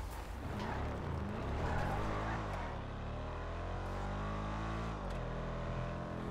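A car engine hums and revs steadily as the car drives along a road.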